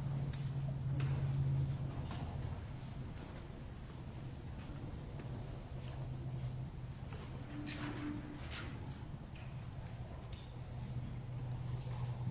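An acoustic guitar is strummed softly in an echoing room.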